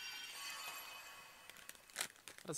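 A magical chime shimmers and rings.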